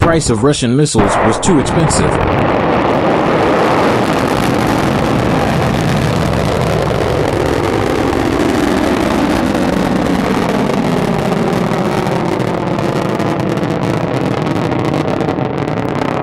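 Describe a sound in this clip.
A rocket engine roars loudly during launch.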